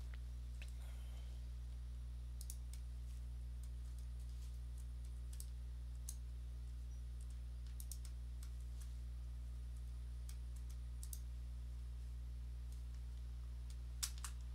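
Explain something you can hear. Short soft clicks sound now and then as menus open.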